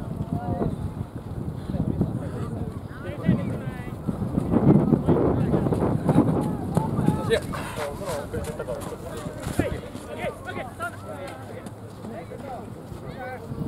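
Wind rumbles outdoors.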